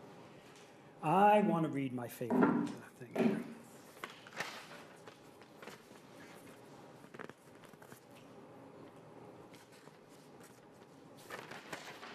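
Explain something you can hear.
An elderly man speaks through a microphone in an echoing hall.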